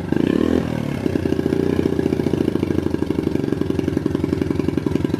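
A small motorcycle engine idles with a fast, steady putter.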